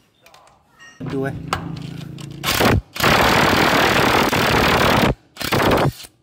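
An impact wrench whirs and hammers loudly on a wheel nut.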